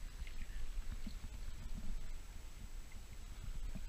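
Water splashes softly as a hand moves through it.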